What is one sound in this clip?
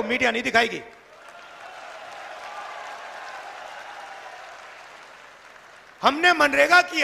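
A large crowd cheers and claps outdoors.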